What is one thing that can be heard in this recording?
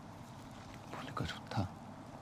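A man speaks softly up close.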